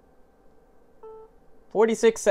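A watch gives a short soft beep.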